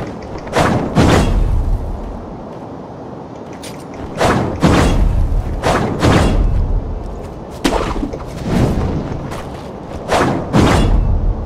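Footsteps run over gravel and wooden boards.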